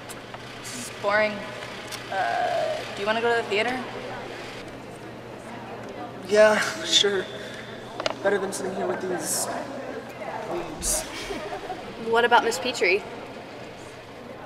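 A young woman speaks casually nearby.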